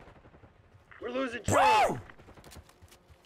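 A man shouts loudly into a microphone.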